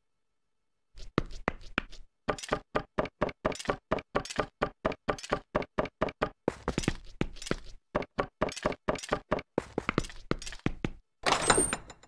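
Footsteps clatter quickly on wooden ladder rungs.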